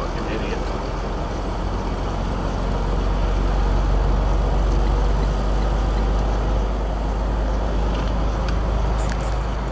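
A car's engine hums and tyres roar steadily on the road from inside the car.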